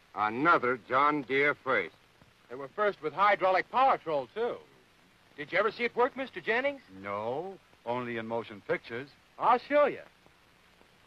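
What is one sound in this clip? Men talk calmly at close range, heard through an old film soundtrack.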